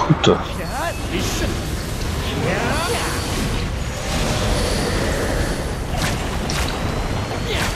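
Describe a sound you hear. Deep rumbling effects roll on throughout.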